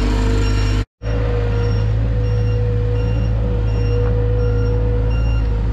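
A skid steer loader engine rumbles steadily.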